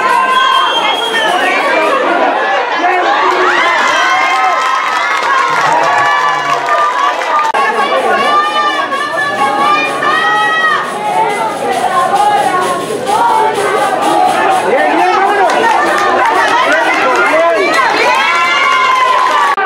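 Many young men shout and cheer nearby outdoors.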